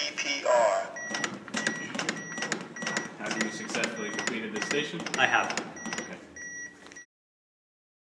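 An electronic device beeps at a steady, even pace.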